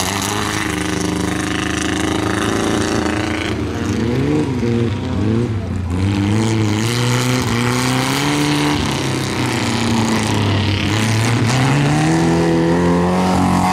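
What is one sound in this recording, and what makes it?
A race car engine revs hard on a dirt track.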